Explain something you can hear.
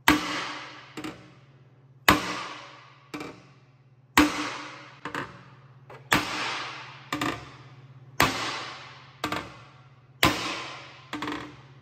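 A hammer strikes sheet metal in a steady rhythm, each blow ringing out.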